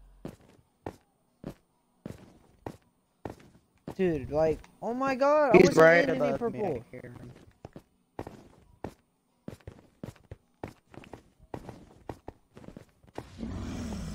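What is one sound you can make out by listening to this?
Footsteps tread steadily over hard ground.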